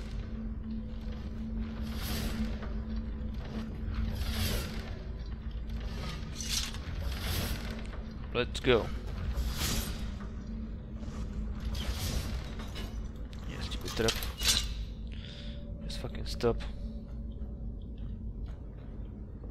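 Footsteps scuff slowly on a stone floor in an echoing passage.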